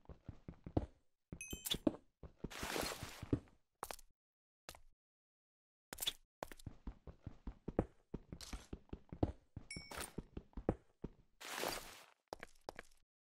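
A pickaxe chips and cracks at stone.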